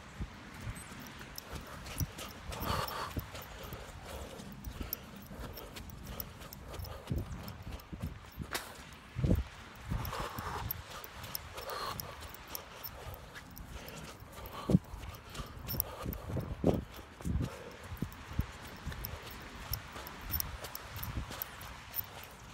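Gusty wind blows outdoors and buffets the microphone in bursts.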